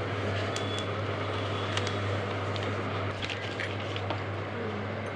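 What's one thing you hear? Cardboard rustles and scrapes as a box is opened by hand.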